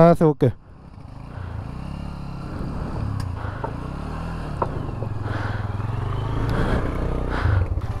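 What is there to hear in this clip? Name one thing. A motorcycle engine revs as the bike climbs over rocks.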